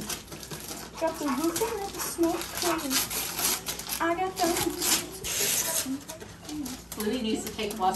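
Tissue paper rustles as a gift bag is opened.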